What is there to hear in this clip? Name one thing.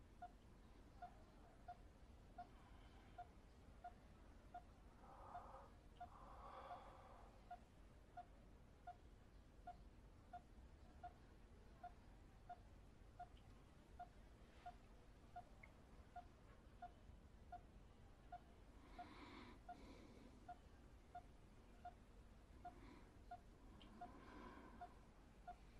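A heart monitor beeps softly at a steady, even pace.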